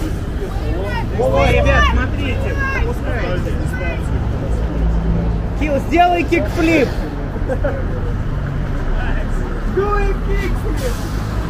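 Young men talk nearby outdoors.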